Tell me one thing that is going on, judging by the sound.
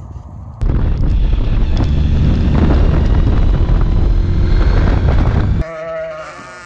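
A car drives along a road with loud wind and engine rumble.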